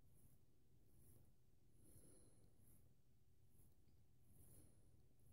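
A razor blade scrapes through stubble in short, repeated strokes.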